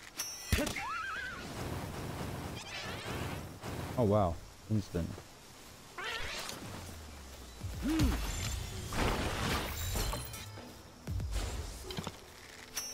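Creatures cry out with high, gliding calls.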